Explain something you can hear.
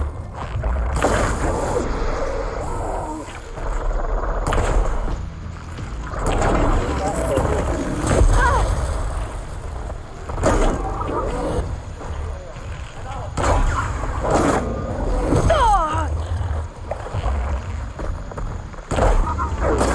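Explosions burst with loud booms.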